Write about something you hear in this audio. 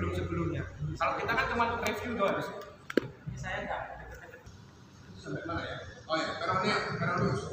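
A young man talks calmly and clearly in a room with some echo.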